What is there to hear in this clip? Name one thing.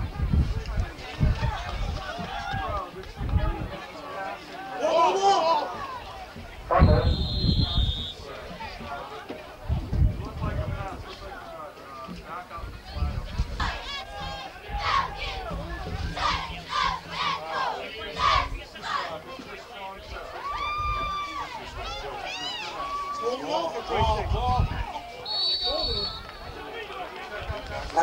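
People on the sidelines talk and shout throughout.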